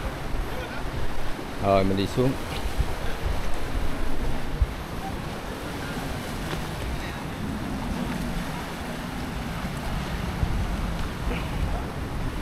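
Waves wash gently against rocks nearby.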